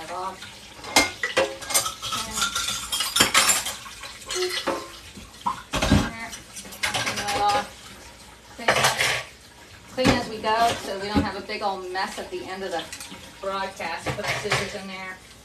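Dishes clink and clatter in a sink.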